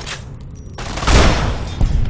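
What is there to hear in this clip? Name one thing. A rifle shot booms and echoes.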